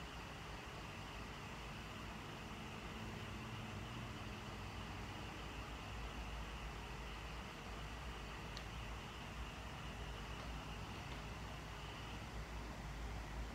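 An electric fan whirs steadily nearby.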